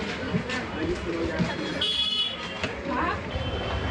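An iron thuds and slides over cloth.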